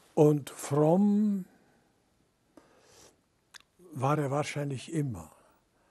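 An elderly man speaks calmly and close to a microphone, pausing between phrases.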